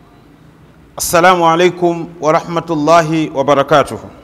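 An elderly man chants in a steady, melodic voice, close to a microphone.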